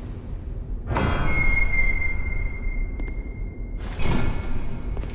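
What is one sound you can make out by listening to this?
Heavy doors grind open with a creak.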